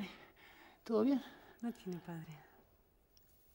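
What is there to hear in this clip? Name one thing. A woman moans and sighs softly close by.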